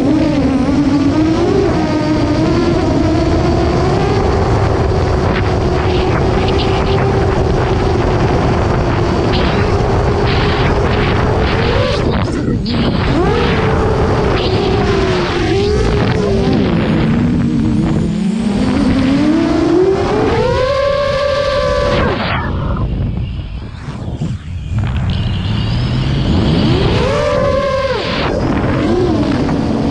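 Wind rushes past the drone.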